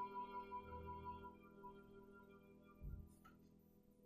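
A piano plays softly along with a cello.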